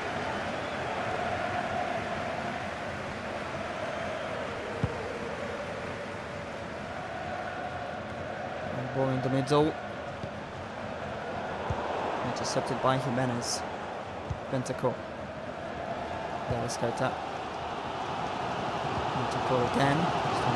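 A large stadium crowd roars and murmurs steadily throughout.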